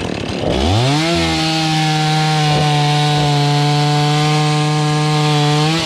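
A chainsaw engine idles steadily.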